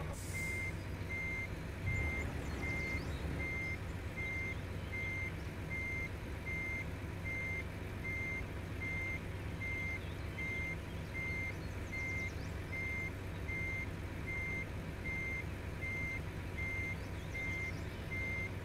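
A diesel truck engine rumbles.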